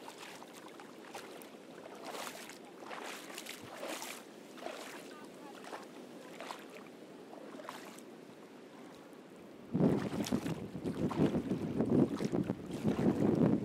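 Shallow water laps and trickles gently over stones.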